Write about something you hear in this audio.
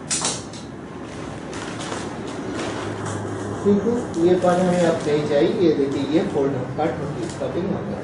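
Paper rustles as it is handled and folded.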